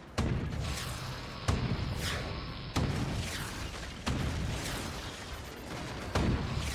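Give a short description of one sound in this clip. A laser beam hums loudly.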